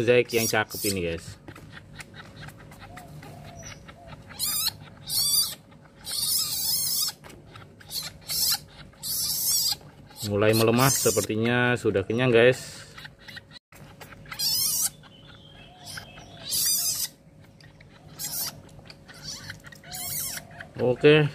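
A newborn kitten squeaks and mews softly while suckling.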